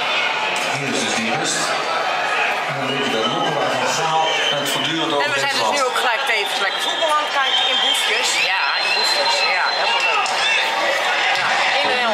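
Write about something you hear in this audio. A crowd chatters loudly.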